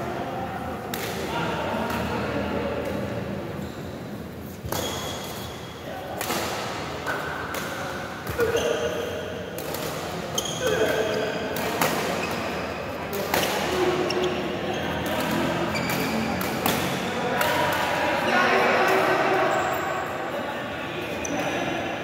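Voices of men and boys call out in a large echoing hall.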